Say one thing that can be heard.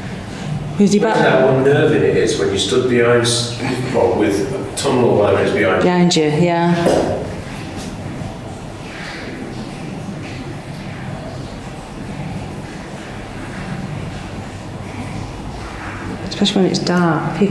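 A man speaks calmly and close by, with echo as if in a large empty hall.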